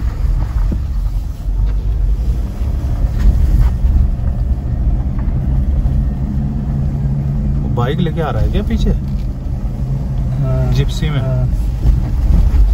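Tyres rumble on a rough road surface.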